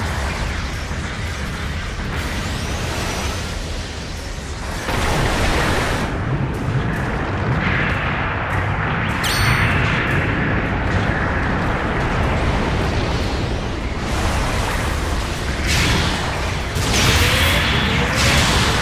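A jet thruster roars steadily.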